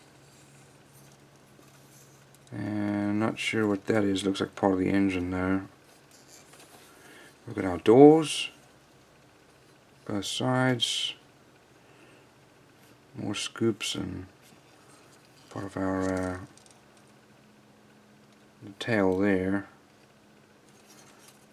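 Hard plastic parts rattle and click softly as hands turn them over.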